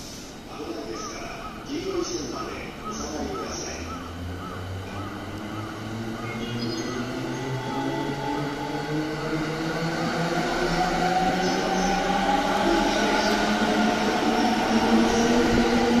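An electric train pulls away with a rising motor whine.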